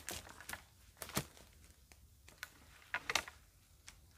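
Dry twigs snap and crack as a branch is pulled through undergrowth.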